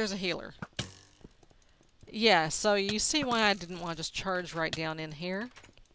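A sword strikes with dull thuds.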